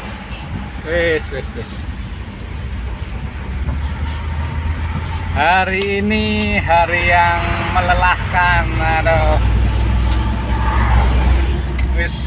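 Tyres roar on a road.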